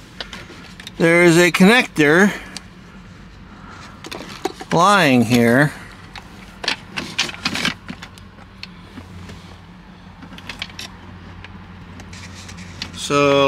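Hands rustle and click plastic wiring connectors into place.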